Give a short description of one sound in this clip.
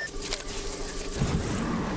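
A zipline whirs as a character slides along it.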